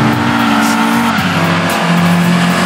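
A racing car engine drops in pitch as it shifts up a gear.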